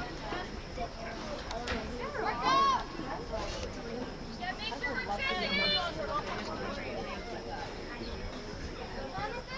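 Young women shout and call to each other outdoors at a distance.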